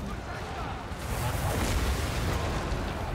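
A lightning bolt cracks and rumbles.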